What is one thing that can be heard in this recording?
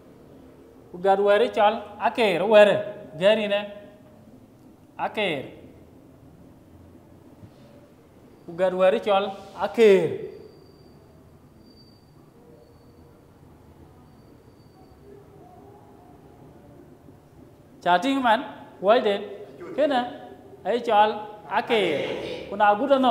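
A man speaks clearly in short bursts, like a teacher explaining.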